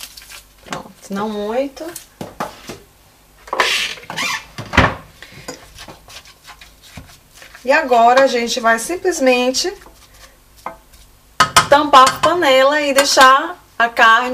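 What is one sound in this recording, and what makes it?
A wooden spoon stirs and squelches through raw minced meat in a metal pot.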